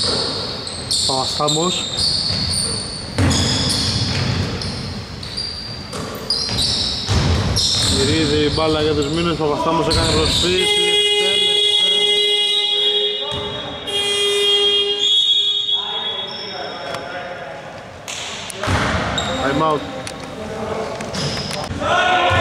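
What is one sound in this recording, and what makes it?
Young men shout to each other across an echoing hall.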